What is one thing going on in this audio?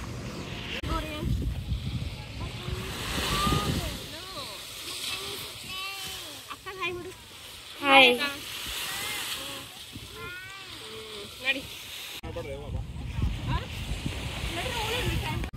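A young child chatters and squeals in a high voice close by.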